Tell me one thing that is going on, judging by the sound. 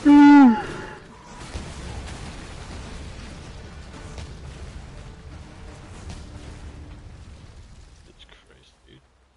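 Rocks and debris rumble and clatter down.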